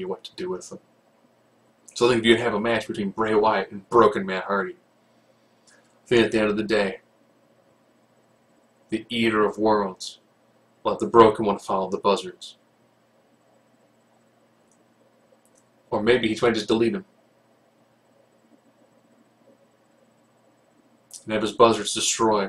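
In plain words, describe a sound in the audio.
A middle-aged man talks calmly into a microphone, in short bursts with pauses.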